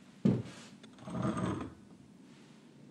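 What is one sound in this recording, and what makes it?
A glass clinks against a bottle.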